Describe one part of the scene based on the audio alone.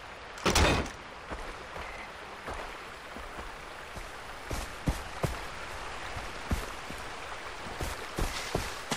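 Footsteps crunch on the ground at a steady walk.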